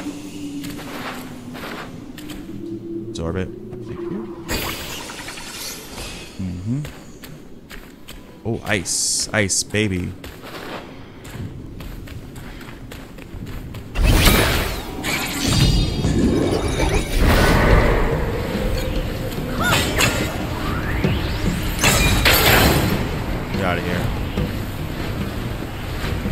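A staff whooshes through the air in swift swings.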